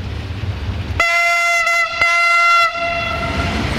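A train's horn blows loudly in two long blasts.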